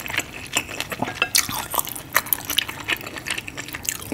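Wet noodles slurp and slap as they are lifted from a thick sauce.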